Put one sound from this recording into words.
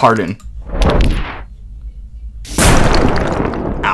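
A heavy stone thuds down and cracks apart.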